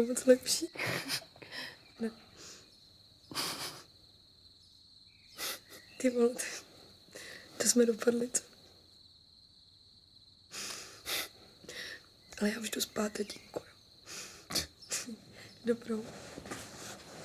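A young man speaks softly and warmly, close by.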